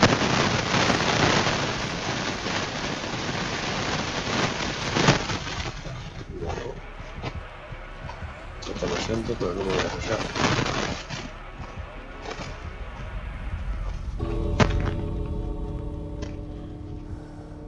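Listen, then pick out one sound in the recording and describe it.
Footsteps run over dry ground and leaves.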